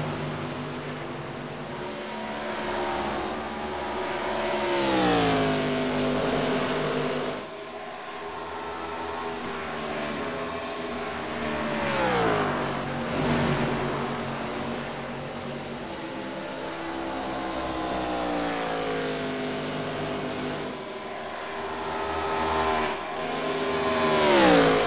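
Race car engines roar past, rising and falling in pitch as they pass close by.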